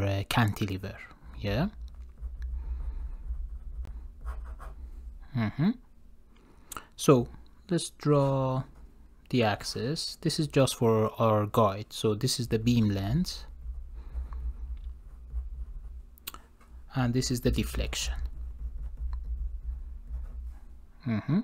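A felt-tip pen squeaks and scratches on paper.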